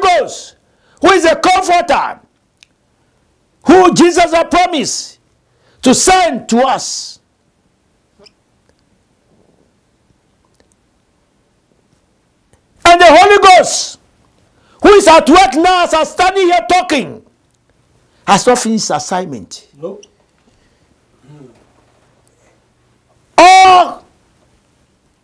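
A middle-aged man preaches forcefully into a microphone in bursts, with long pauses between phrases.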